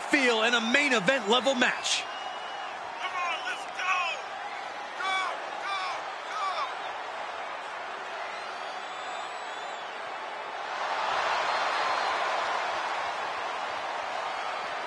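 A crowd cheers and murmurs in a large hall, swelling louder toward the end.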